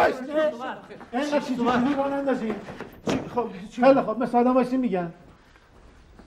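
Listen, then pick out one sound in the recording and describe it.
A man speaks loudly and sternly.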